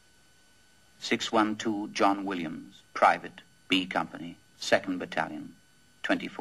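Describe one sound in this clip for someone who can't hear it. A second man answers in a raised voice.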